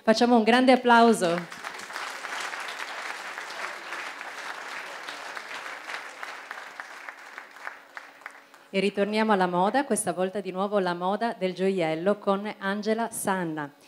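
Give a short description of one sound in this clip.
A young woman speaks with animation into a microphone, heard through loudspeakers in a large hall.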